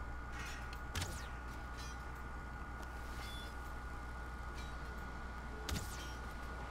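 A bowstring snaps as an arrow is loosed.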